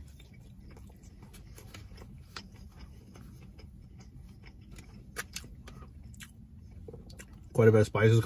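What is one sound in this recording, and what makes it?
A man chews food with his mouth full.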